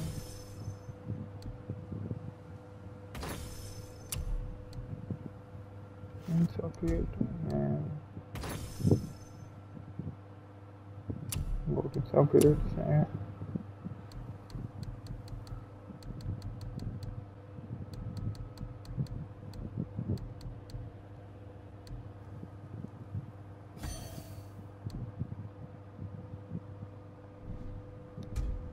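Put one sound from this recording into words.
Soft menu clicks and ticks sound as selections change.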